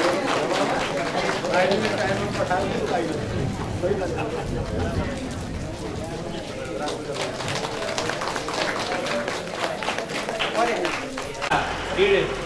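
A man speaks steadily through a microphone over loudspeakers.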